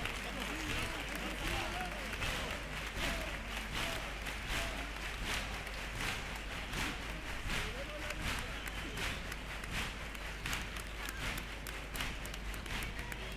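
A crowd of men and women sings together on a stage in a large echoing hall.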